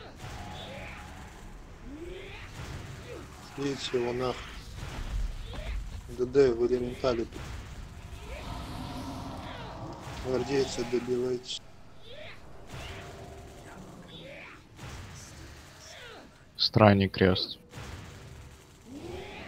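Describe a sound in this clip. Electric bolts crackle and zap in a magical battle.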